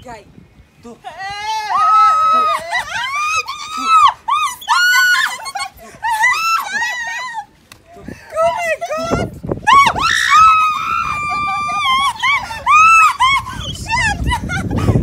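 Young women scream and shriek close by.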